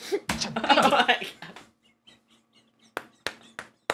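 A man laughs loudly close to a microphone.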